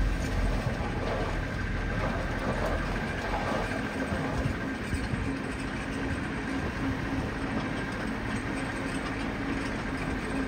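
Dirt pours and rumbles out of a tipping truck bed.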